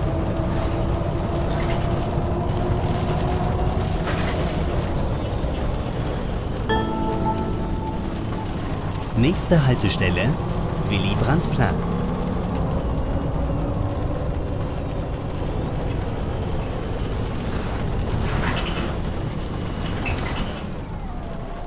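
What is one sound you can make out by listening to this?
A bus engine hums and whines steadily as the bus drives.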